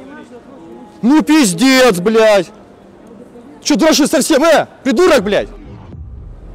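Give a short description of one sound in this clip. A young man sings loudly up close in a large echoing hall.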